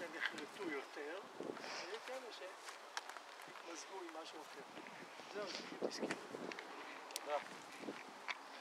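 An elderly man speaks calmly outdoors, close by.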